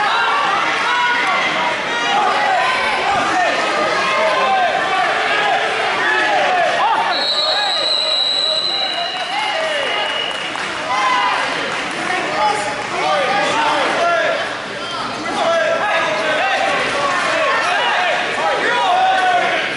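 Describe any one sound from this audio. A crowd of spectators chatters and cheers throughout a large echoing hall.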